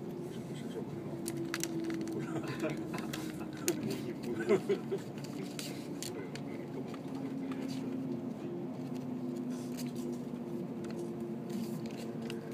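A train rumbles steadily along the tracks from inside a carriage.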